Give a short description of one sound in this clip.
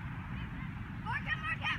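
Young women players shout to each other in the distance.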